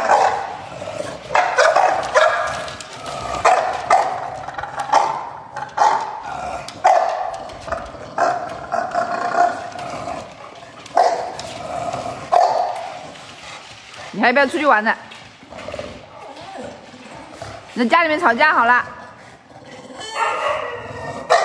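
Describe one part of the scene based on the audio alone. Dogs bark repeatedly close by.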